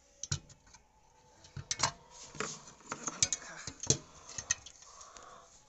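Metal parts of an iron clink and knock as hands handle them.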